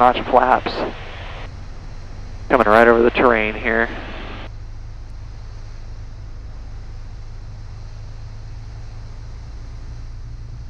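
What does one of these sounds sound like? A small plane's engine drones steadily in flight.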